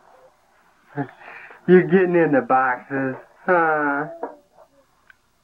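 A toddler squeals and laughs loudly close by.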